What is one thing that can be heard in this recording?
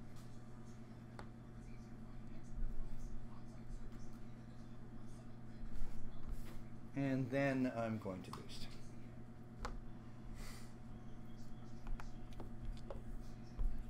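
Small plastic pieces click and tap lightly on a tabletop.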